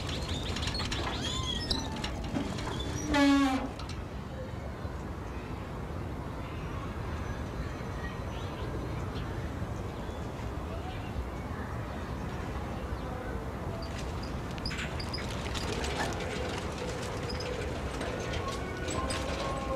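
A tricycle creaks as it is pedalled.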